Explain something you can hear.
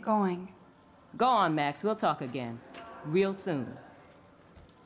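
A middle-aged woman answers warmly.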